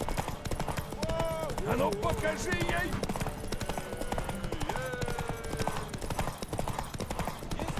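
A horse's hooves gallop steadily over a dirt path.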